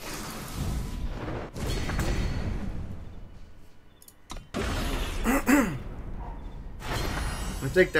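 Magical game effects whoosh and chime.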